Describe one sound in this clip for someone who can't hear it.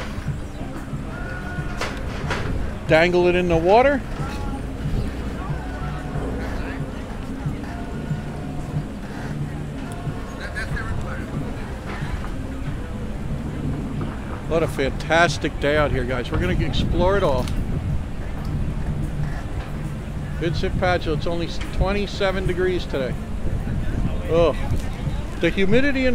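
A crowd of men and women chat and murmur outdoors.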